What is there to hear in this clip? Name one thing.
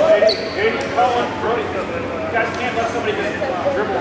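A man calls out instructions loudly, echoing in a large hall.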